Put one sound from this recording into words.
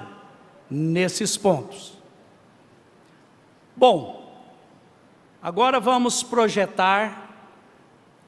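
A middle-aged man speaks slowly and calmly into a microphone, with pauses, in a room with a slight echo.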